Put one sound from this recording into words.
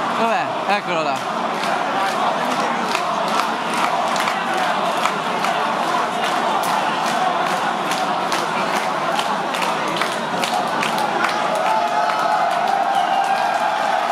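A drum kit is played with sharp, rapid hits.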